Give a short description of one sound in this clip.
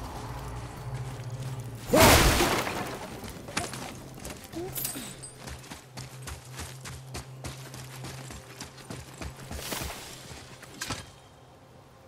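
Footsteps crunch on snow and dirt.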